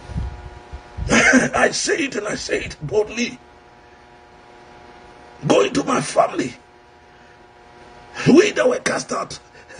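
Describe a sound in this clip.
A middle-aged man speaks with feeling close to a phone microphone, in short bursts with pauses.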